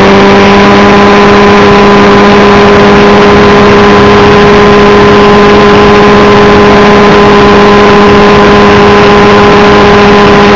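A small engine whines at a steady high pitch, close by.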